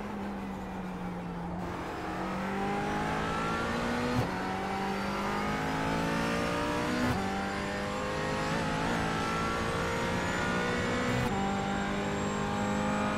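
A race car engine roars, its pitch climbing steadily and dropping back with each gear change.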